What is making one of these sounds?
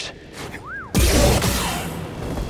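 A heavy thud of a landing on wooden boards.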